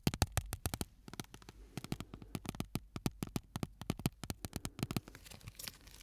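Fingers tap and brush against a microphone.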